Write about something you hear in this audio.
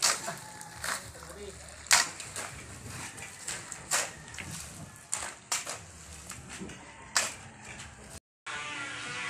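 Shovels scrape and thud into wet earth.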